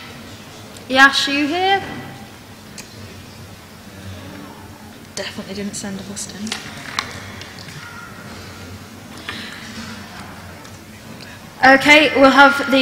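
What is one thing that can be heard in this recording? A young woman speaks into a microphone.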